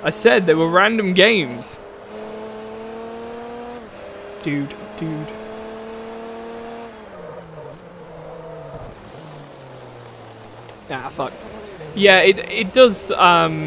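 A race car engine whines and revs up through the gears.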